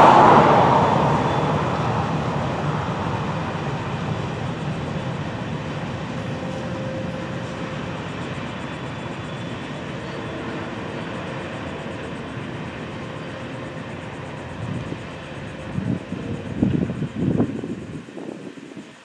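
Freight cars clatter over the rails.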